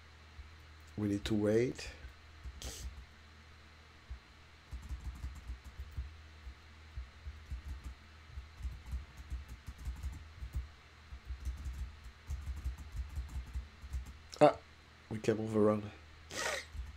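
A middle-aged man speaks briefly and calmly, close to a microphone.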